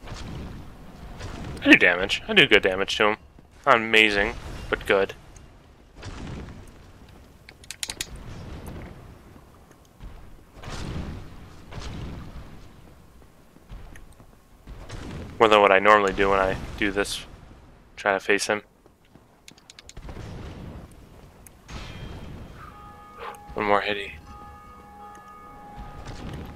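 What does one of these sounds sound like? A sword strikes a huge creature with heavy blows.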